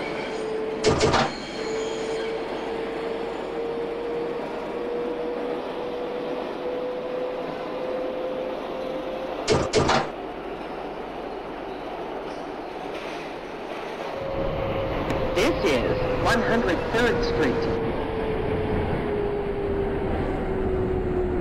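A train's motor whines steadily, rising slowly in pitch as it speeds up and then falling as it slows.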